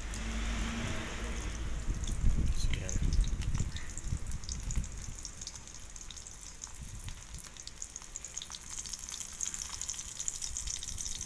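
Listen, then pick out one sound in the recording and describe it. Small fish sizzle and crackle as they fry in oil in a metal wok.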